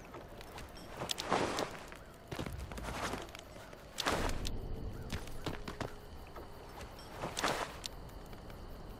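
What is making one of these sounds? A cloth sack rustles and crumples.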